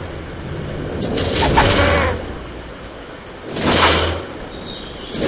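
A sword swings and strikes during a fight.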